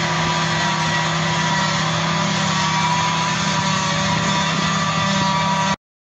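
A forage harvester's engine roars steadily with a high mechanical whine.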